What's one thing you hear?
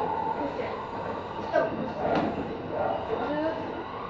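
Train wheels clatter and squeal over track switches.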